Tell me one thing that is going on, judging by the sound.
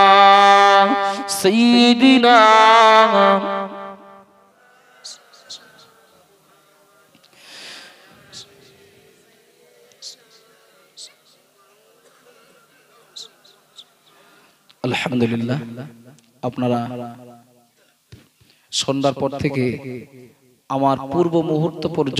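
A man chants in a melodic voice through a microphone and loudspeakers.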